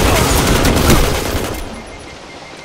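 A loud explosion roars, then quickly dies away.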